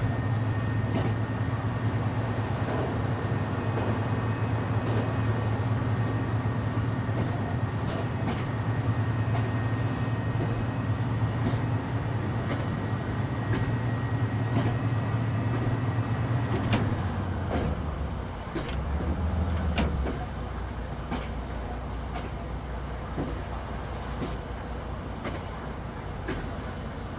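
A train engine hums steadily while running fast.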